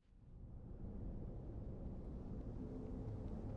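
A deep swirling whoosh rumbles and swells.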